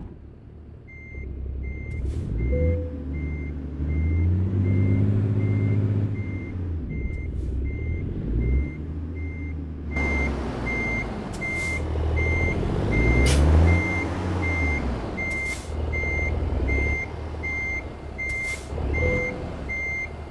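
A truck engine rumbles and revs up and down.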